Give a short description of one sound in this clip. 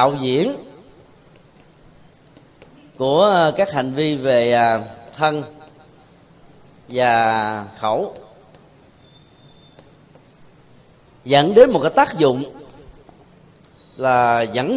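A man speaks in short, drawn-out phrases with long pauses between them.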